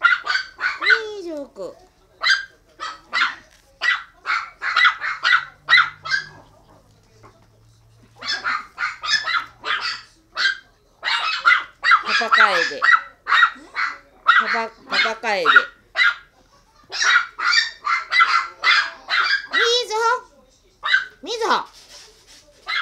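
A Chihuahua puppy whines.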